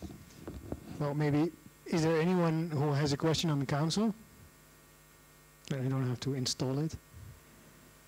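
A man speaks through a headset microphone and loudspeaker in an echoing room.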